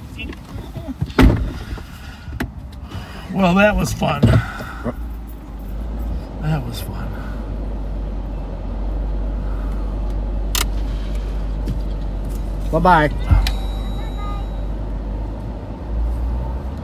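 A car rolls along a street with a low, steady rumble, heard from inside.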